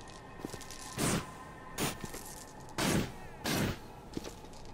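Sharp electric blasts crackle and burst in loud bursts.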